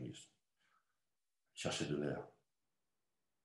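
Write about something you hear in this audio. An older man speaks in short bursts over an online call.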